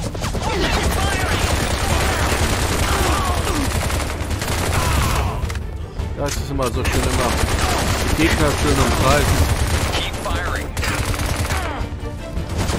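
Rapid gunfire rattles loudly and steadily.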